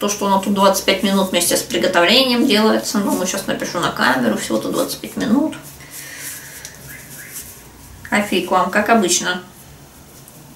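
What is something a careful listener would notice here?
A young woman talks calmly close by.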